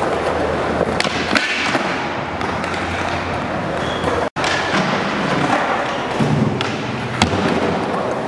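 A skateboard clacks sharply as it lands.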